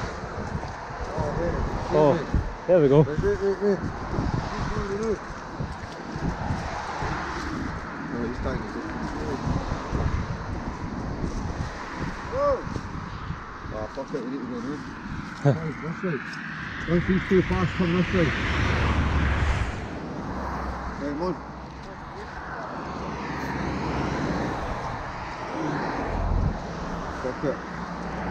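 Young men talk casually close by, outdoors.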